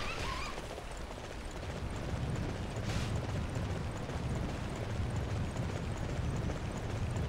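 Horse hooves thud in a steady gallop.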